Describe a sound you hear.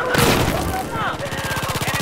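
A rifle fires sharp shots.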